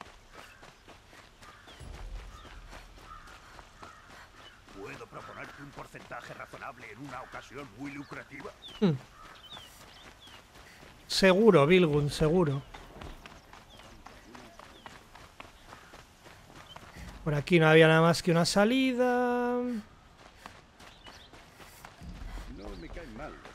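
Quick footsteps run over stone.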